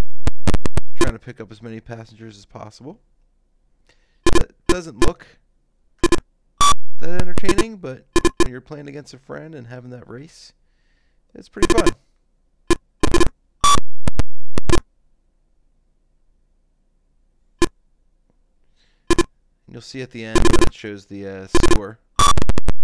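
A buzzy electronic tone from an old computer game warbles up and down.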